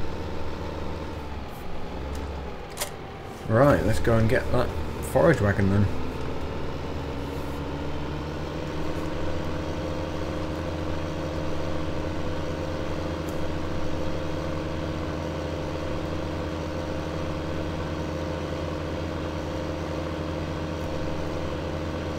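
A tractor engine hums steadily and rises as the tractor speeds up.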